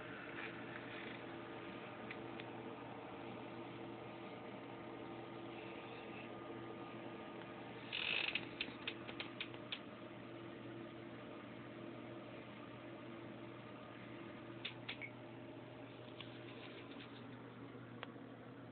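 A computer hums steadily nearby.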